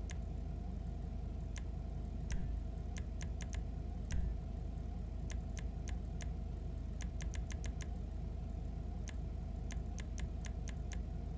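Short sharp menu clicks tick in quick bursts.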